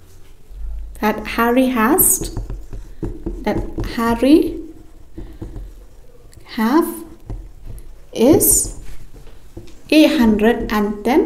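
A young woman speaks calmly close by, explaining.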